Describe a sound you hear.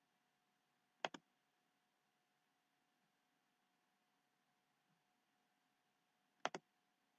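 A computer mouse clicks twice in quick succession, close by.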